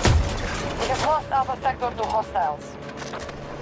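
Gunfire and explosions boom in the distance.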